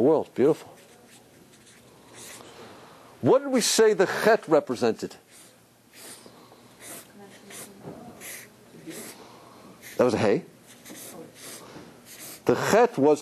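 A marker squeaks on paper.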